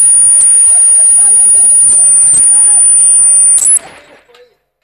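A microphone squeals with a steady high whine.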